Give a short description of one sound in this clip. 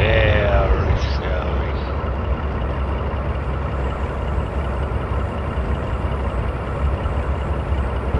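A train's engine rumbles steadily from inside the cab.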